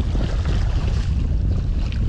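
Water splashes around a man wading through shallow water.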